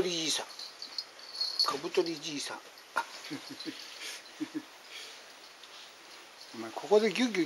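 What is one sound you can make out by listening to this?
A dog whines and grumbles up close.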